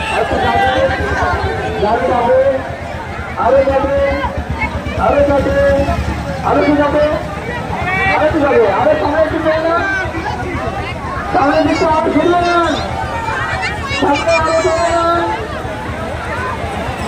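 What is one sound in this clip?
A crowd of men and women chants loudly together nearby.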